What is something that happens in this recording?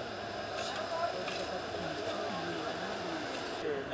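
Shovels scrape and dig into rubble.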